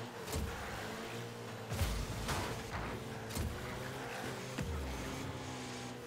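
A rocket boost whooshes in short bursts.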